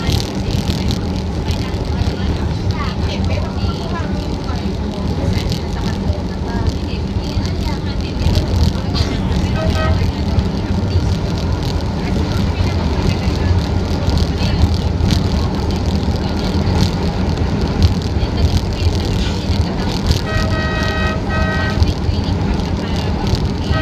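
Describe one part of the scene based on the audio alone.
A train rumbles steadily along its tracks.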